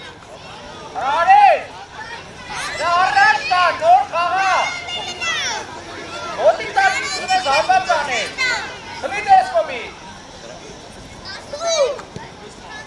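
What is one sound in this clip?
Young children shout and call out loudly across an open field.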